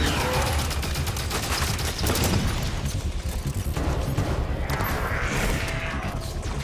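Energy weapons fire in rapid bursts with sharp crackling blasts.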